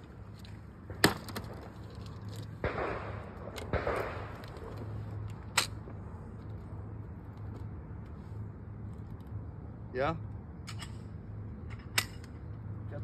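Shotguns fire sharp, loud shots outdoors, one every few seconds.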